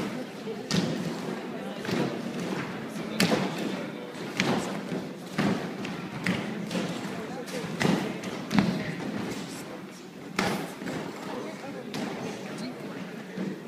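Feet thud on a springboard and mats as children vault in a large echoing hall.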